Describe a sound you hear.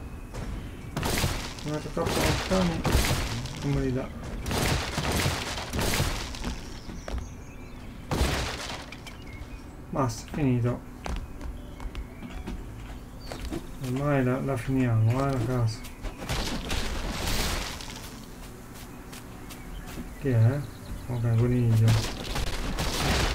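Game sound effects burst and thud as blocks are placed and broken.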